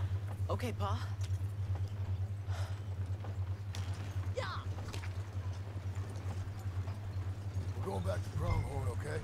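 Horse hooves clop on a dirt road.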